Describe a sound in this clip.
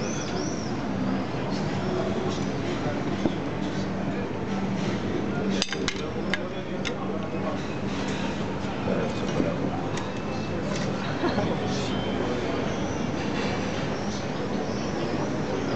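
Plates clink as they are set down on a table.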